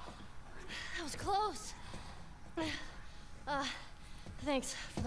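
A man speaks in a weary, relieved voice.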